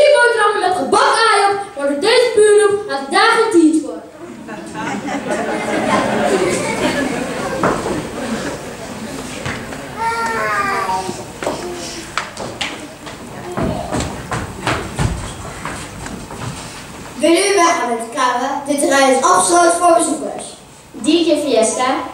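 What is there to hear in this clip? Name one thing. A woman speaks into a microphone with animation, amplified through loudspeakers in a large echoing hall.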